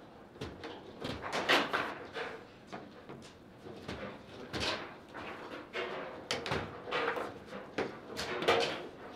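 Foosball rods clatter and spin in quick bursts.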